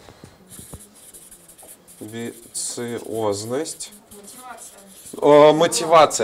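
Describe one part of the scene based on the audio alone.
A marker squeaks on paper.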